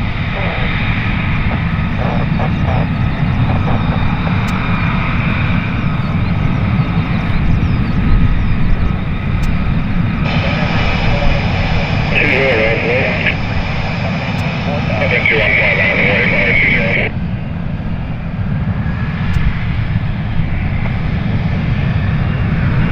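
A jet engine roars loudly and steadily nearby.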